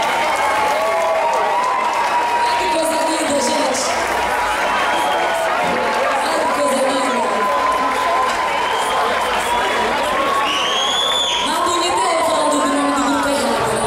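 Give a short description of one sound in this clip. A live band plays loud, upbeat music through a sound system.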